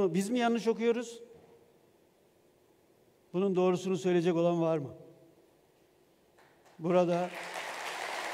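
A middle-aged man speaks calmly into a microphone, heard through loudspeakers in a large hall.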